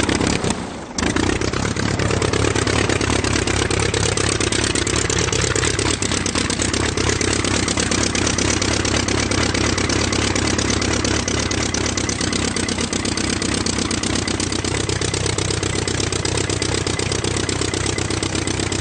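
A car engine runs with a steady, low, rapid rumble.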